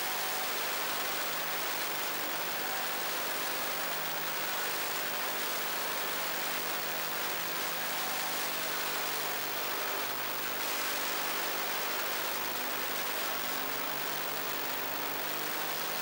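A buggy engine roars loudly up close, its pitch rising and falling.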